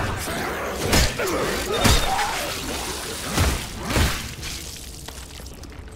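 A monster snarls and shrieks.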